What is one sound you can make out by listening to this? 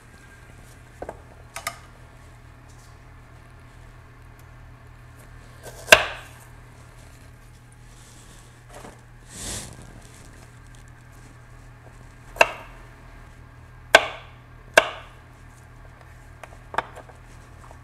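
A knife chops vegetables on a cutting board with sharp, scattered knocks.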